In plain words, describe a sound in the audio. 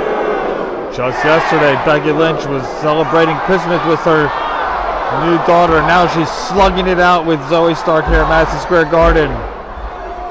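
A large crowd chants in unison in an echoing arena.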